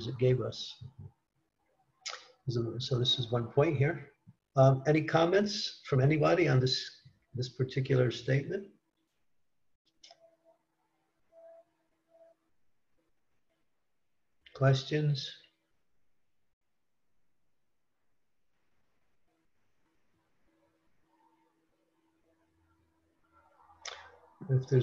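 An elderly man speaks calmly through an online call, with long pauses.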